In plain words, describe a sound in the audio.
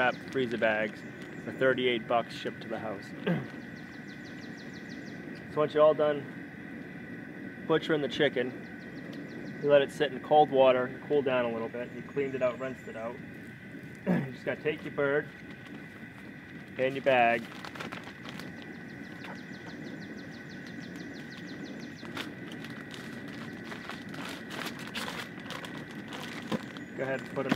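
A plastic bag crinkles as a man handles it.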